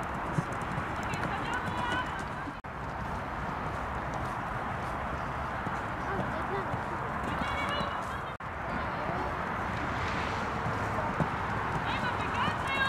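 A woman calls out from a distance.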